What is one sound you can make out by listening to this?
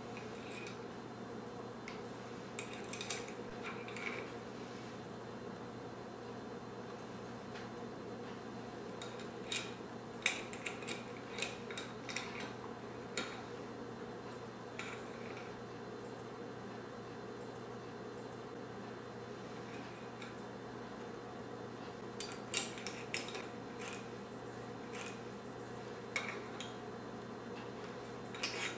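Ceramic tiles clack against a ceramic holder as they are lifted out and set back in.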